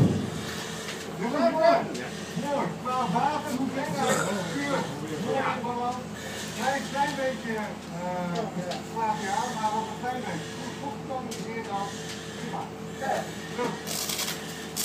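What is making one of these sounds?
A man talks loudly, muffled, nearby.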